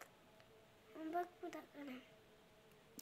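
A young child speaks softly close by.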